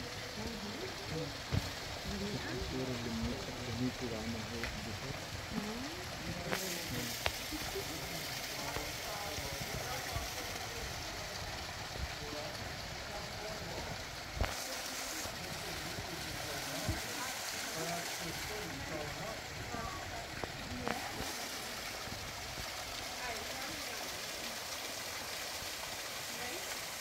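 A small waterfall splashes steadily into a pool.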